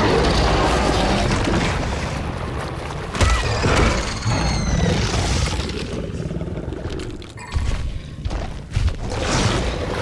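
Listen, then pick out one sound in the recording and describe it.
A large creature stomps heavily over rough ground.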